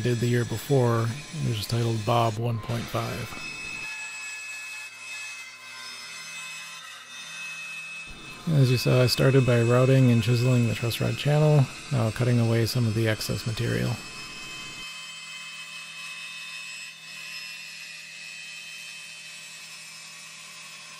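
A band saw runs with a steady hum as it cuts through wood.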